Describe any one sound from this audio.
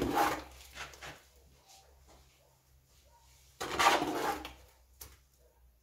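A trowel scrapes and clinks in a bucket of mortar.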